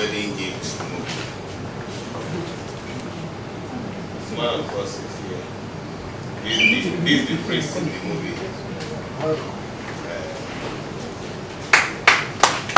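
A man speaks calmly into microphones close by.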